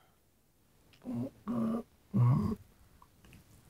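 A man lets out short sleepy groans close by.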